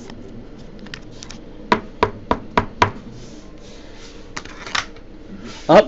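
Plastic card holders click and tap as hands handle them.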